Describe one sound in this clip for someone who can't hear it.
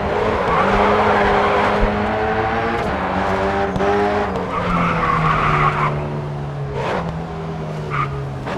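A racing car engine roars at high revs, its pitch rising and dropping with gear changes.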